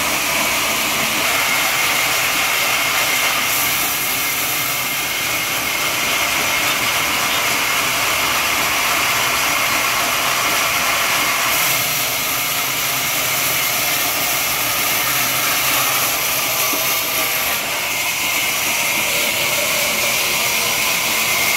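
A band saw whines steadily as it cuts through a log.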